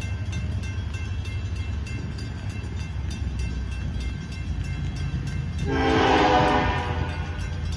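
A train rumbles as it approaches in the distance.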